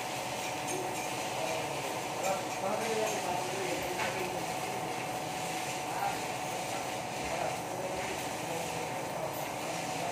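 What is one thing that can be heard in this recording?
A stick welding arc crackles and sizzles.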